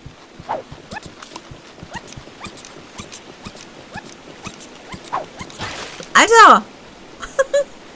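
Water splashes as a small creature thrashes and sinks.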